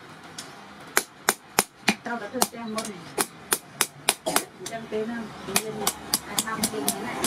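A hand hammer taps metal on an anvil in quick, ringing blows.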